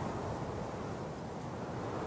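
Bicycles roll over a gravel road.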